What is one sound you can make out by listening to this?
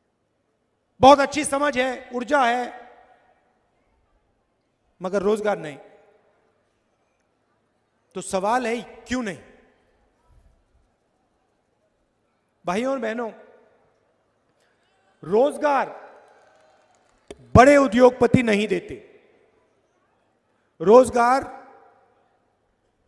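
A middle-aged man speaks forcefully into a microphone, in short phrases with long pauses.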